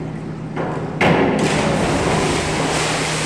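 A diver splashes into a pool in a large echoing hall.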